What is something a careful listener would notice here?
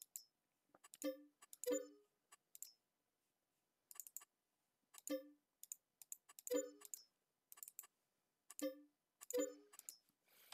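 Soft electronic clicks and chimes come from a game menu.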